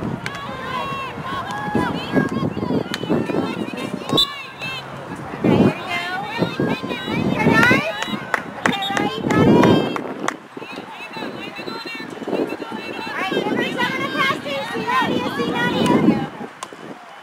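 Young women call out to each other across a field.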